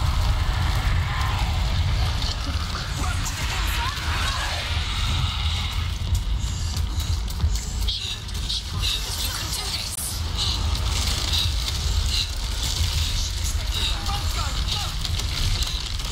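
Footsteps crunch on rough, stony ground.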